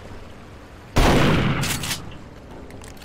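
A shotgun fires with a loud boom.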